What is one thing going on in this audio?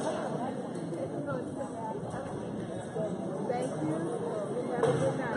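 A crowd of spectators chatters steadily in a large echoing gym.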